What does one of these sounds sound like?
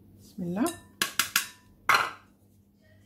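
A metal sieve taps against a glass bowl.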